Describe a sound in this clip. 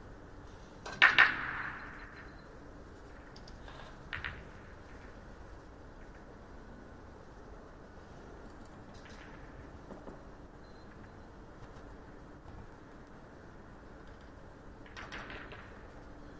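Billiard balls clack together sharply.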